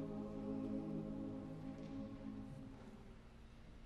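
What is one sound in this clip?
A large choir sings a sustained chord that fades away in a reverberant hall.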